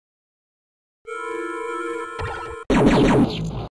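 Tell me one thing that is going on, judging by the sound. Electronic game tones chime in a steady chord.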